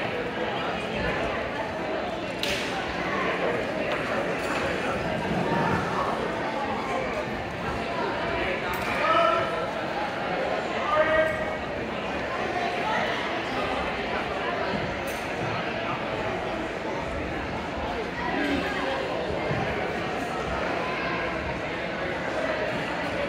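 Many voices murmur in a large echoing hall.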